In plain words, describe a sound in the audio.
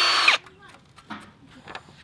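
A power drill whirs briefly.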